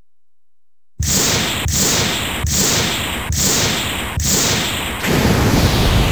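A series of energy bursts pulse rapidly.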